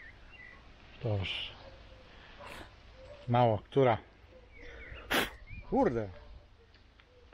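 A man speaks in short phrases close by.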